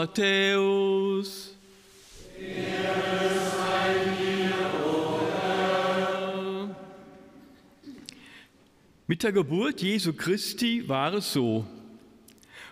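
An older man sings and chants through a microphone in an echoing room.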